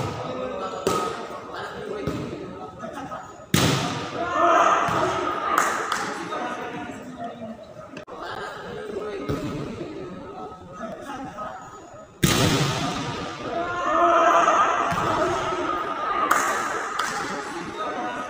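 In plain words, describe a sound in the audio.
Young men shout and call out across a large echoing court.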